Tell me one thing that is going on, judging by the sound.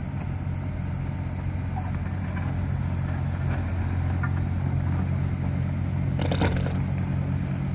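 An excavator's tracks clank and squeal as it turns.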